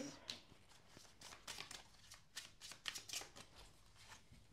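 Cards shuffle and flick softly.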